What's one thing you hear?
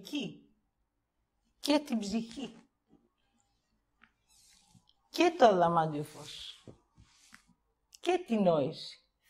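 A middle-aged woman speaks with animation through a lapel microphone, pausing between phrases.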